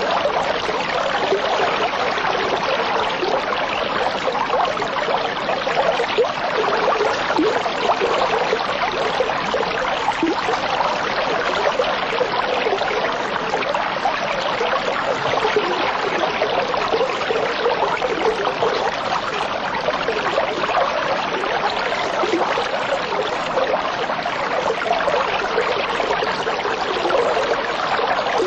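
Water bubbles and fizzes steadily.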